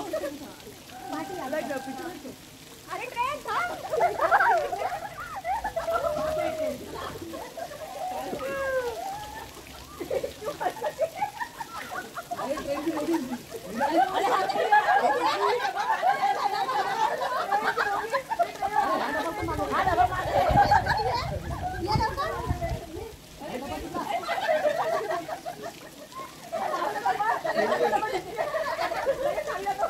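A group of young people talk and laugh in the water nearby.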